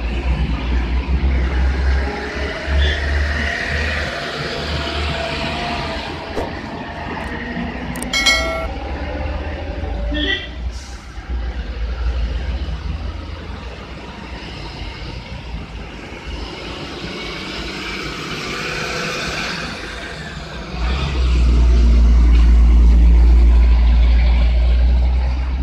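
Cars and trucks drive by on a road one after another.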